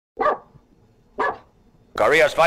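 A dog barks.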